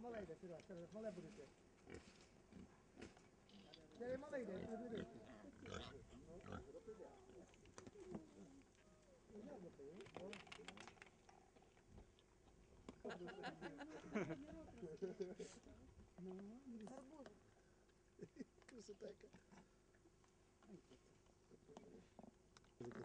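Wild boars grunt and snort close by.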